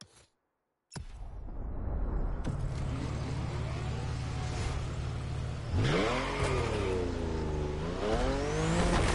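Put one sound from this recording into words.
A car engine hums and revs as the car speeds up.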